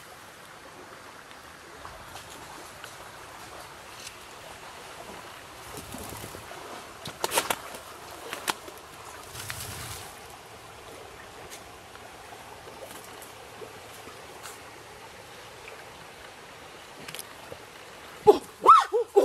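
Goats rustle through dry leaves and grass.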